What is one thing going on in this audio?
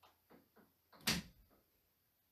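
A game piece clicks sharply as it moves.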